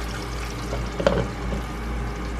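A lid clinks onto a frying pan.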